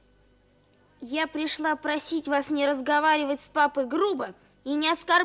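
A young girl speaks softly, close by.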